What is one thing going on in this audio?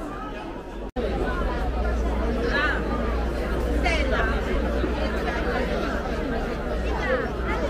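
A crowd of men and women chatters outdoors, close by.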